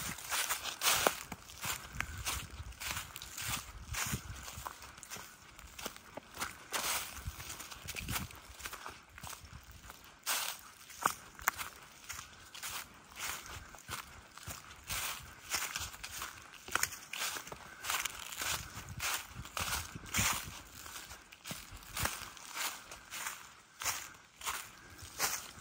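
Footsteps crunch through dry leaves at a steady walking pace.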